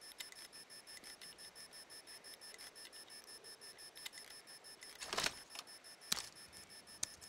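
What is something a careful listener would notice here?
A lock pick clicks and scrapes in a metal lock.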